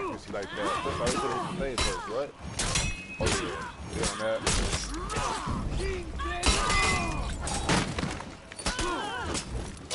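Swords clash and clang in a fierce fight.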